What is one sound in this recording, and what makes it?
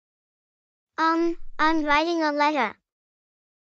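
A young woman asks a question with animation.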